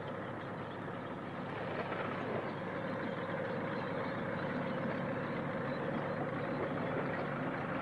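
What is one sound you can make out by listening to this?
A tractor engine rumbles as it pushes through brush.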